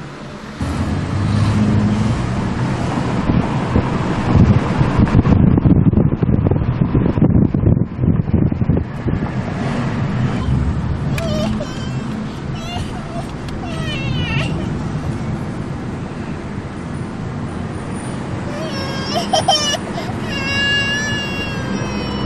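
A car engine hums and tyres rumble on the road while driving.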